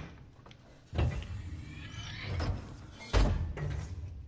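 A heavy metal lever clanks as it is pulled down.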